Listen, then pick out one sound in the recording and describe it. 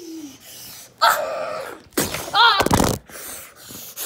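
A young child speaks close by.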